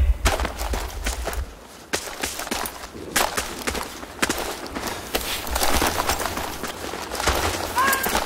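Footsteps run over gravel and rubble.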